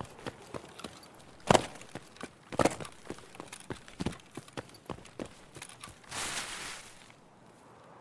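Grass and branches rustle against a moving body.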